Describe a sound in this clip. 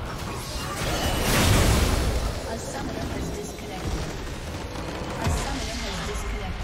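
A large structure explodes with a deep rumbling boom.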